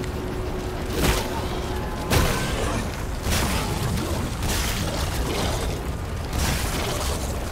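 Gunshots ring out in loud, sharp bursts.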